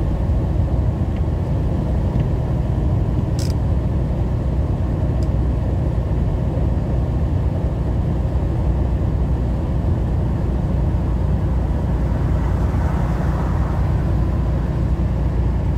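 A truck engine rumbles steadily while driving along a road.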